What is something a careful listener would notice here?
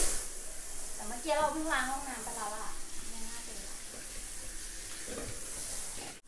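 A brush scrubs a bathtub surface.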